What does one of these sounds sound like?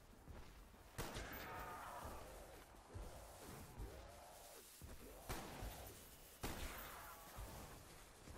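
A zombie growls and moans close by.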